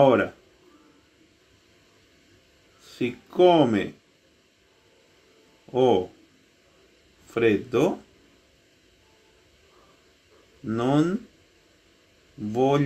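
A man speaks slowly through an online call, in short phrases with long pauses.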